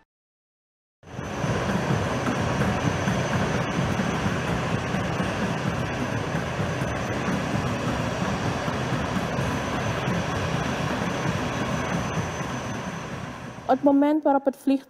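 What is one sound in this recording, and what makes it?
A jet airliner taxies with its engines roaring steadily.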